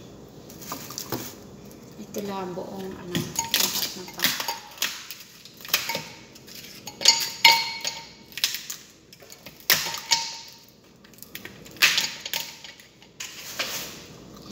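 Ice cubes clatter and knock into a glass jar.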